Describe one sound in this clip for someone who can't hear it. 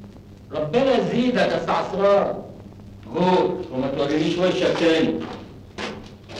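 A man talks with animation close by.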